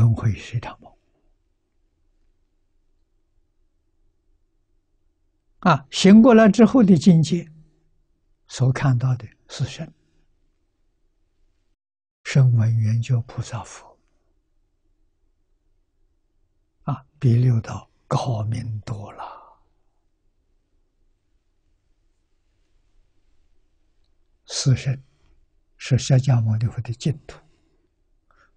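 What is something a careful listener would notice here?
An elderly man speaks calmly with long pauses, close to a microphone.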